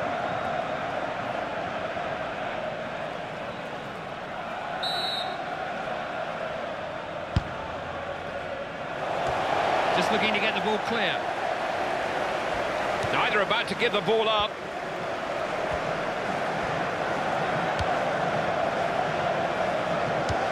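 A large stadium crowd roars steadily, swelling louder at times.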